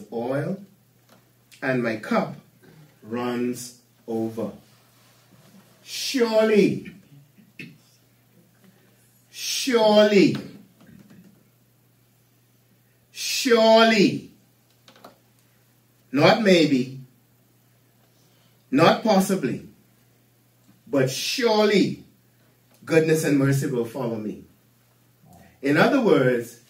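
An older man speaks slowly and deliberately in short phrases, with long pauses.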